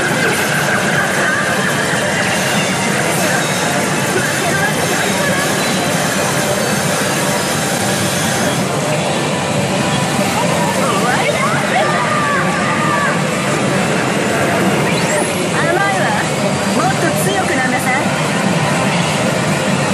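A pachinko machine plays loud music and sound effects.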